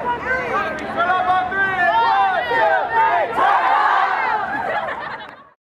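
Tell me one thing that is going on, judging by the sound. A crowd of young people cheers and shouts excitedly outdoors close by.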